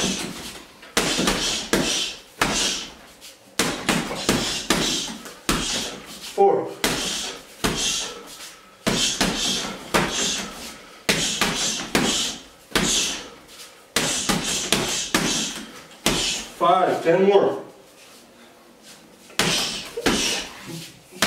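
Heavy punches thud repeatedly against a punching bag.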